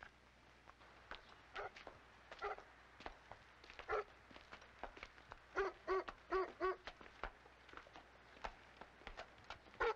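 Hooves clop on dry ground.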